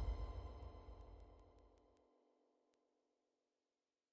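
Music with a deep beat plays and fades out to silence.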